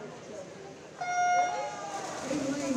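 An electronic start signal beeps once.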